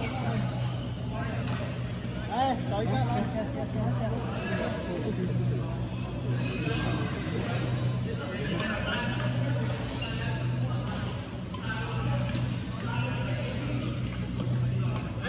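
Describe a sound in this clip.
Many people talk in a murmur across an echoing hall.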